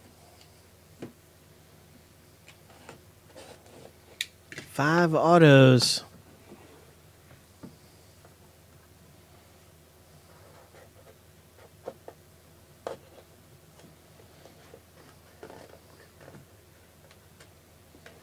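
Fingers tap and scrape on a cardboard box.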